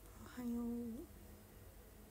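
A young woman hums a short note close to the microphone.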